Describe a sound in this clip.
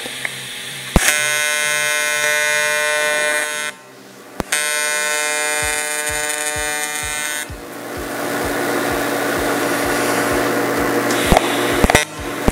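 An electric welding arc buzzes and crackles in bursts.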